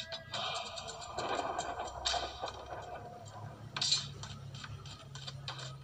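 Music from a mobile game plays through a small phone speaker.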